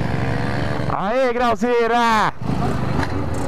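A motorcycle engine revs loudly, rising and falling in pitch.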